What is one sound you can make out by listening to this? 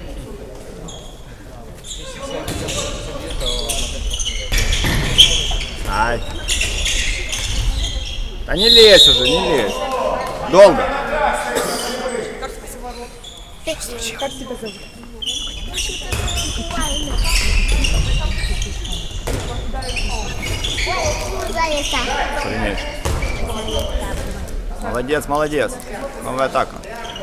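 Players shout to each other across the hall.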